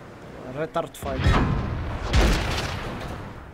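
A tank cannon fires with a heavy boom.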